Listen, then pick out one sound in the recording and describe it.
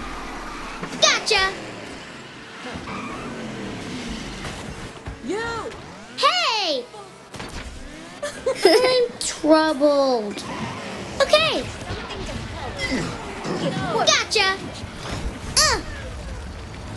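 Boost effects whoosh past in sharp, sweeping bursts.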